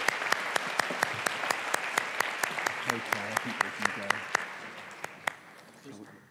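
A man claps his hands steadily.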